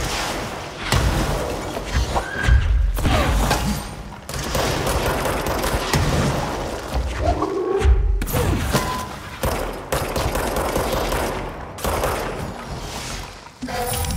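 Explosions boom and debris crashes.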